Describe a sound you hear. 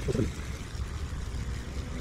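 A boat's motor rumbles low and steady.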